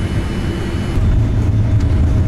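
Jet engines roar louder as an aircraft speeds up on the runway.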